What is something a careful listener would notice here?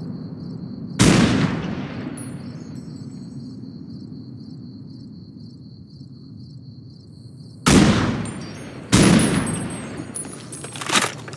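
A heavy launcher fires with a loud boom that rumbles and fades.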